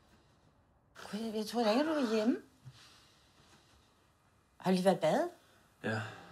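An elderly woman speaks quietly and hesitantly nearby.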